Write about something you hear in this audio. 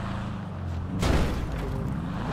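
A car thumps over a curb.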